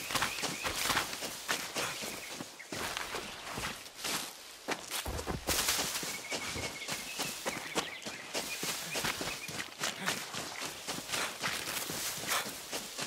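Footsteps rustle quickly through dense leaves and undergrowth.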